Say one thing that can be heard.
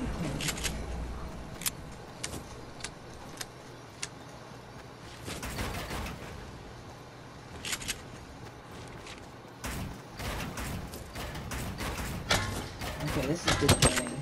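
Building pieces snap into place with sharp clicks.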